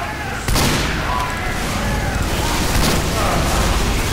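An explosion booms and fire roars.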